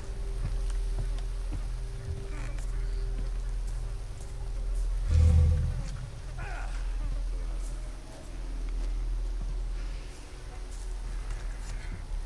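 Footsteps tread on dirt and leaves.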